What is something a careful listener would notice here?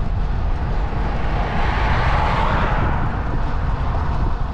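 A car passes close by with a rising and fading whoosh.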